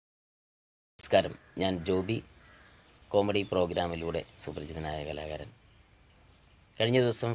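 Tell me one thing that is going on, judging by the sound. A man talks calmly, close up.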